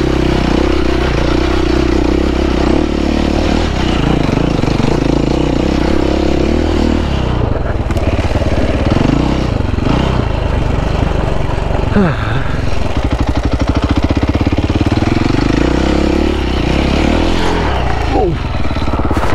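A dirt bike engine revs and sputters up close, rising and falling in pitch.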